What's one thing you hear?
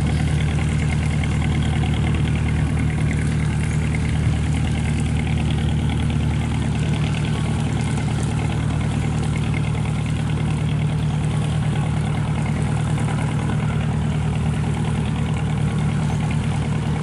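A boat's diesel engine chugs steadily nearby.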